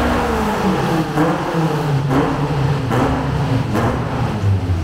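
Exhaust pops and bangs crackle sharply as a car engine lets off.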